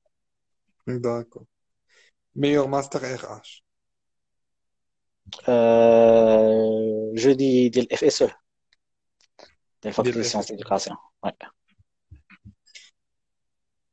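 A young man talks close to a phone microphone, in short bursts with pauses.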